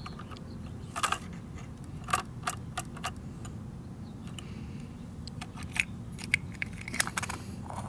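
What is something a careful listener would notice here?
A toy trash bin knocks against a toy garbage truck.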